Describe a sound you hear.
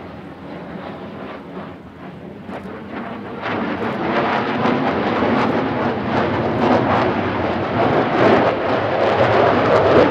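A jet engine roars loudly overhead, growing louder as it passes.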